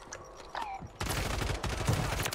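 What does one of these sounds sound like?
A gun fires a quick burst of shots.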